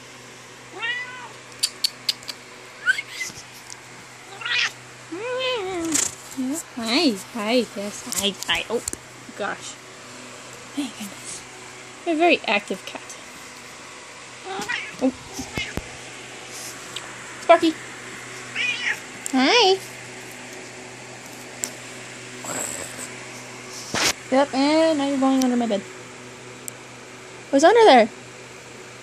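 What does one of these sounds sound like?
A cat meows loudly several times, close by.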